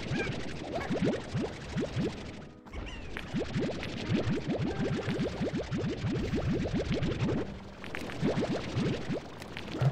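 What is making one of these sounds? Rapid rising popping shots fire in quick bursts.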